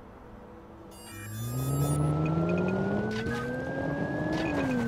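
A sports car engine revs hard and climbs in pitch.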